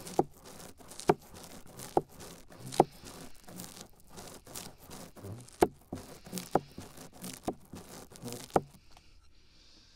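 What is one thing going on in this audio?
Fingers tap and scratch on a microphone very close up.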